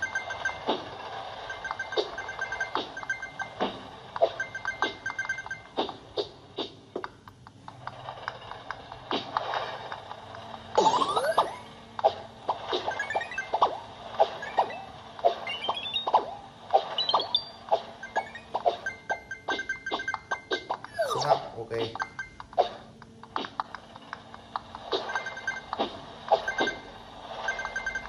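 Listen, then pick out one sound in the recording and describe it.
Game sound effects chime and whoosh from a tablet speaker.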